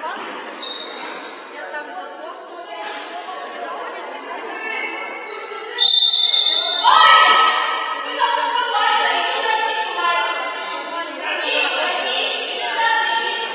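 Basketball shoes squeak on a wooden gym floor.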